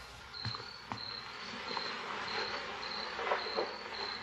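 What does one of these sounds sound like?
Cloth rustles as a man handles clothing.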